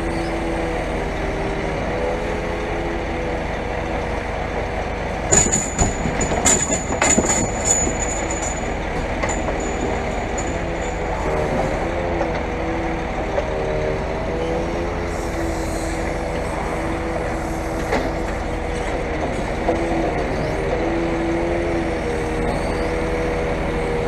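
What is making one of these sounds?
A crane's hydraulic engine drones and whines steadily.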